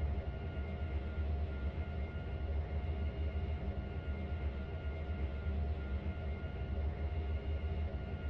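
A jet engine idles with a steady low hum.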